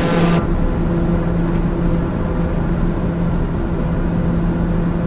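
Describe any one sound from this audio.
A single-engine turboprop drones steadily in cruise, heard from inside the cockpit.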